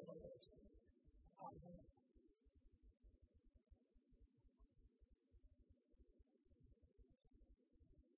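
An elderly man speaks calmly in a large echoing hall.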